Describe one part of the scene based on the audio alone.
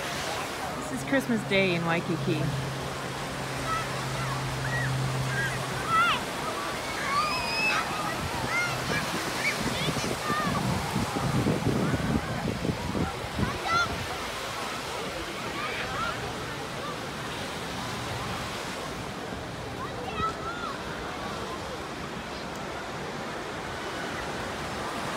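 A crowd of people chatters and calls out all around, outdoors.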